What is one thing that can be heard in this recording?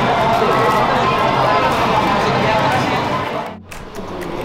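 People chatter in a busy, echoing queue.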